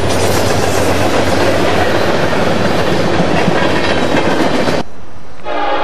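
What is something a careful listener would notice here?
A freight train of tank cars rolls past, wheels clattering on steel rails.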